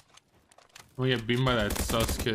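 A man speaks with animation into a microphone, close up.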